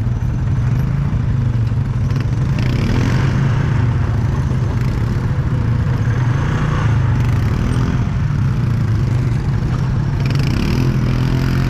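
Other quad bike engines hum nearby.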